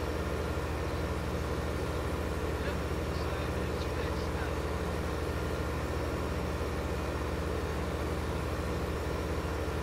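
A tractor engine drones steadily at a low pitch.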